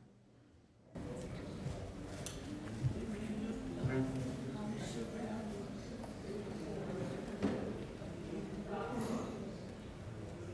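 A crowd of adults chats and murmurs in a large echoing hall.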